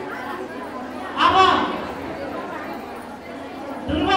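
A woman nearby calls out loudly.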